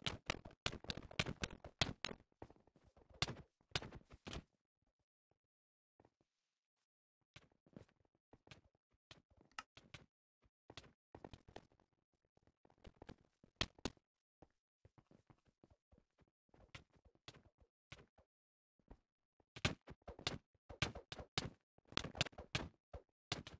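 Game characters hit each other with quick thumping blows.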